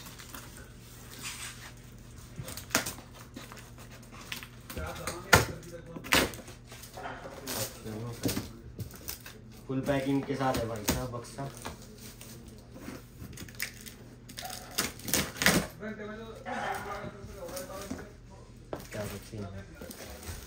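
Packing tape rips as a knife cuts through it.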